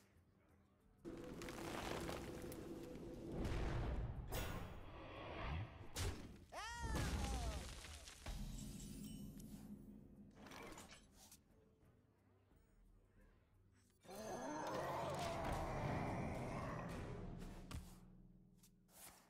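Magical game sound effects chime, swell and whoosh.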